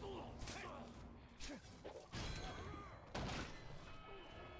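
Blades strike and slash in a fight, with sharp impacts.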